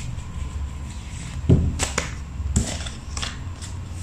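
A card slaps down onto a hard table.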